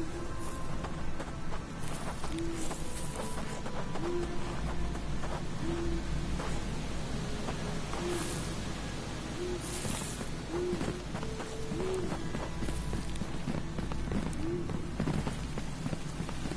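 Footsteps tread steadily along a path.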